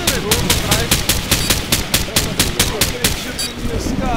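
A rifle fires a rapid string of loud shots.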